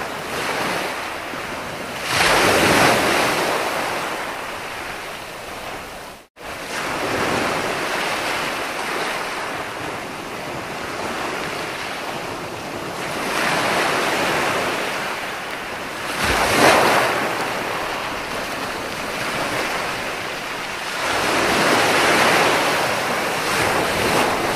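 Foamy water hisses as it spreads over the sand.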